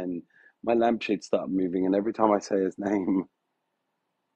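A man talks casually, close to the microphone.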